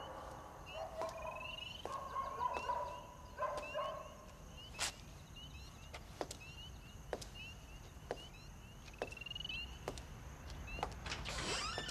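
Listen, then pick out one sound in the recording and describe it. Footsteps click steadily on wet cobblestones.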